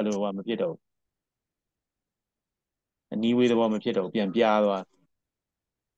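A man talks calmly through a microphone.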